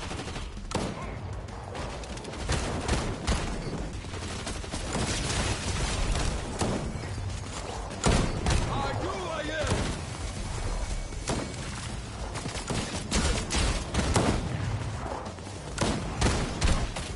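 Gunshots fire in sharp, rapid bursts.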